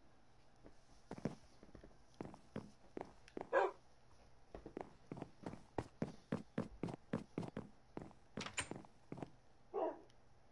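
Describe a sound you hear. Footsteps knock on a wooden floor.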